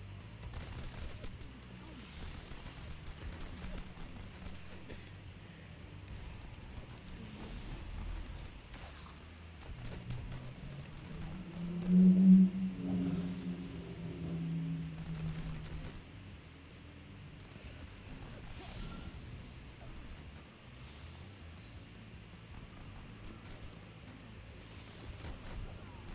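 Game gunfire crackles in short bursts.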